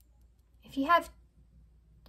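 Small metal charms clink softly in a hand.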